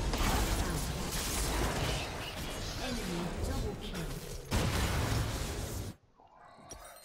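Video game combat effects clash and crackle loudly.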